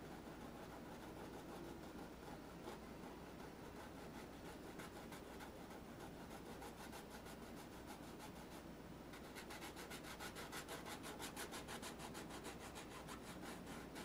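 A paintbrush brushes softly against canvas.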